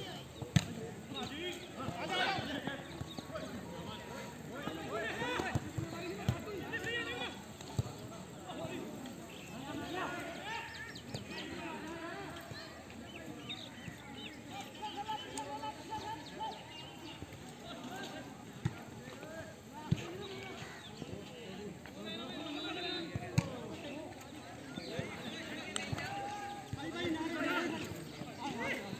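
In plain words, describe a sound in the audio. Young men shout and call to each other outdoors, some distance away.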